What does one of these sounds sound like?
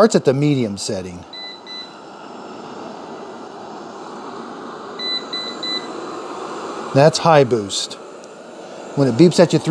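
A robot vacuum cleaner hums and whirs steadily.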